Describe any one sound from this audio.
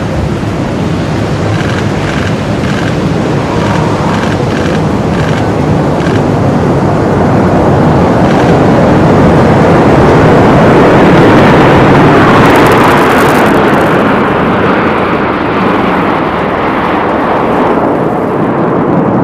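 Jet engines roar loudly overhead in a steady rush.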